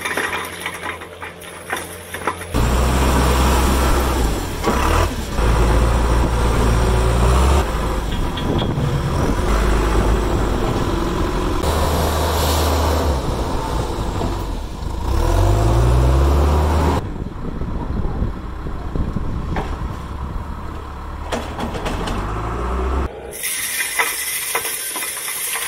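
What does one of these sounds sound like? Gravel pours out of a bucket and rattles onto the ground.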